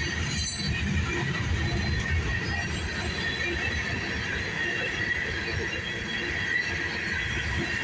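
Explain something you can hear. A freight train rumbles past close by, its wheels clattering on the rails.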